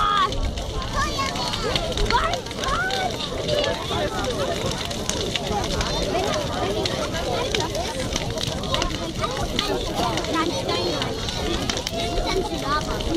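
A bonfire's flames roar steadily outdoors.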